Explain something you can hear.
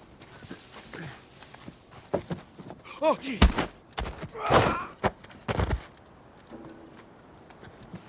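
Hands grip and scrape on rough stone while climbing.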